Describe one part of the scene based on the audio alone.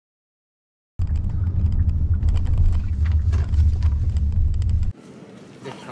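A car rumbles low and steady while driving.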